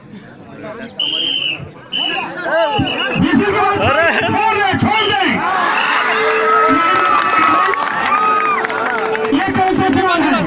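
Men in the crowd shout and cheer loudly.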